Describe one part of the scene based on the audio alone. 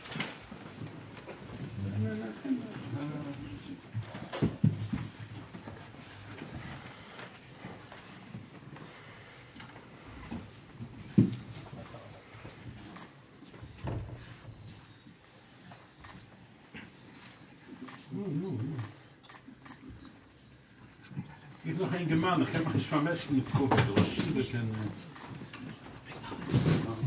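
Several men murmur and talk quietly.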